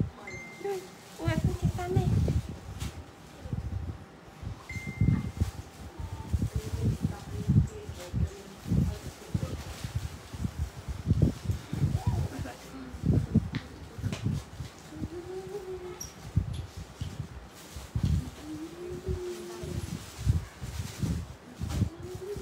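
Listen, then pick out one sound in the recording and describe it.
A young woman talks softly close by.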